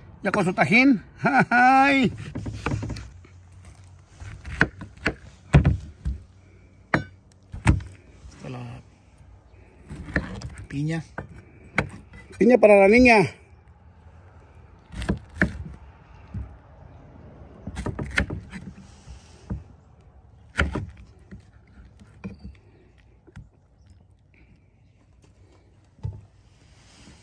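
A knife cuts through fruit and taps on a cutting board.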